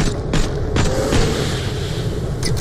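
A small explosion bursts with a crackle.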